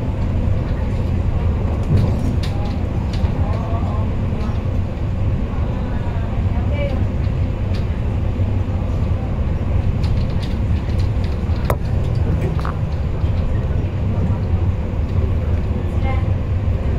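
Train wheels click and rattle over the track joints.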